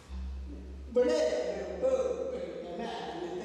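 A middle-aged woman vocalizes loudly nearby.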